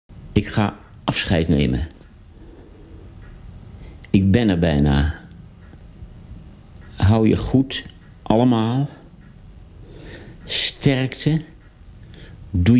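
An elderly man speaks close up, calmly and warmly, in short phrases with pauses.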